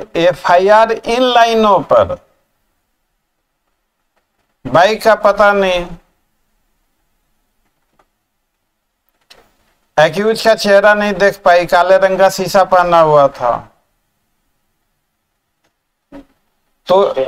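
An older man speaks calmly through a microphone on an online call, in short bursts with pauses.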